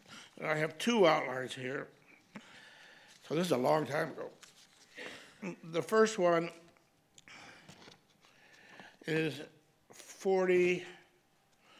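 An elderly man reads aloud slowly and expressively into a microphone.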